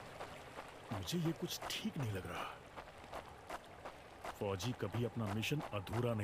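Heavy footsteps crunch on snow.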